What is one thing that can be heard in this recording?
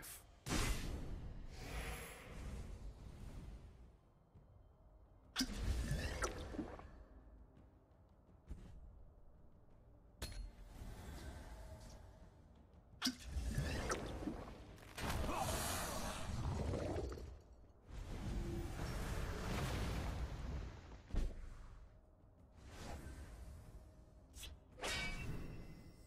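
Game sound effects whoosh and chime in short bursts as cards are played.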